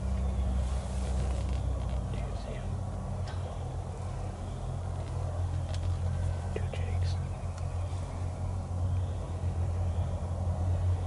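Wild turkeys rustle through dry leaves as they walk.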